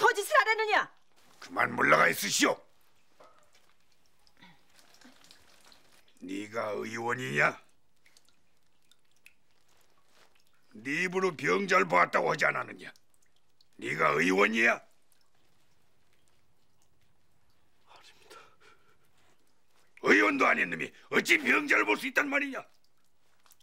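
An elderly man speaks sternly, close by.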